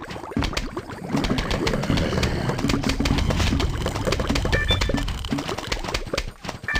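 Cartoon plants fire peas with rapid soft pops.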